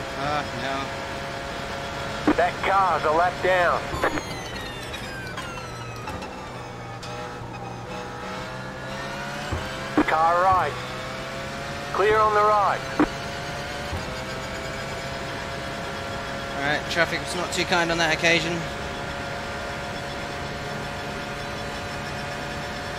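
A racing car engine drones steadily, its pitch rising and falling through gear changes.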